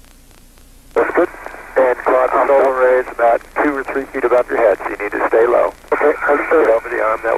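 A man speaks calmly over a crackly, thin-sounding radio link.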